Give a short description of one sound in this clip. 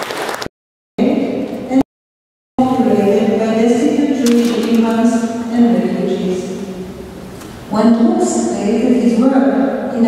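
An elderly woman speaks calmly into a microphone in an echoing hall.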